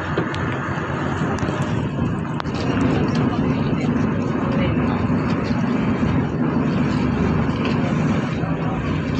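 Wind blows loudly across the open water.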